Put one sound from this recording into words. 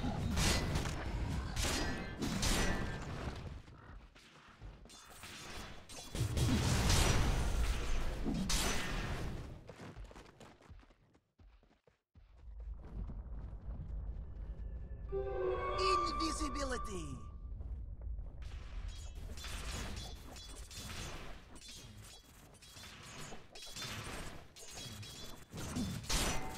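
Weapons clash and magic blasts burst in a busy fight.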